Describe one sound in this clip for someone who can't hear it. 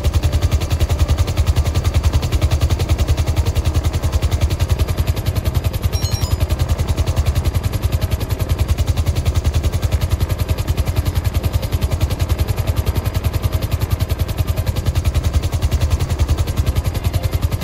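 Helicopter rotor blades thump rapidly and steadily.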